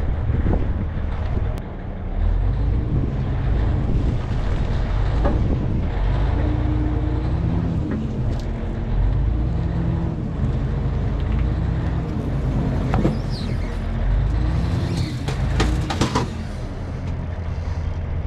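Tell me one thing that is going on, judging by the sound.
Metal tracks clank and creak as a bulldozer crawls slowly forward.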